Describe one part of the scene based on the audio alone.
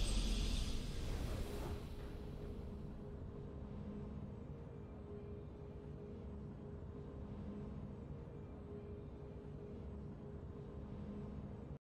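A triumphant victory fanfare from a video game plays, then settles into soft, sustained music.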